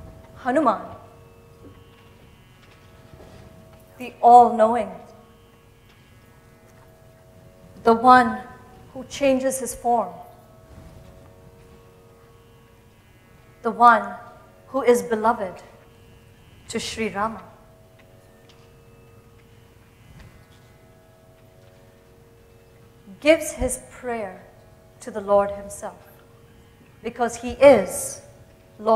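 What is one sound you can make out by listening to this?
A young woman sings short phrases into a microphone.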